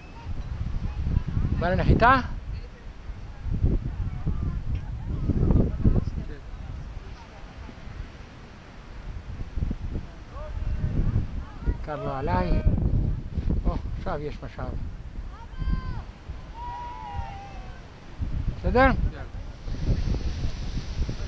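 Wind buffets the microphone in gusts outdoors.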